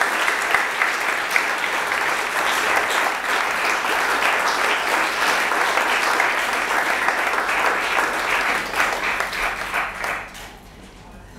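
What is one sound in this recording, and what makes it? An accordion plays.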